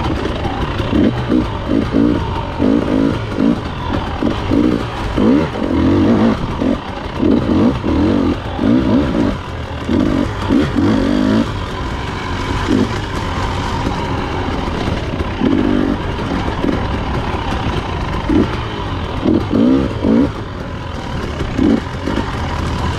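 A dirt bike engine revs up sharply in short bursts.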